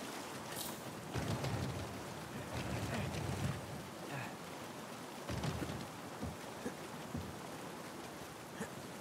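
A heavy wooden crate scrapes and grinds as it is pushed.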